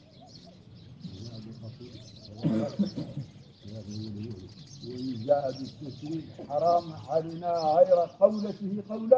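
An elderly man chants in a steady, rising voice.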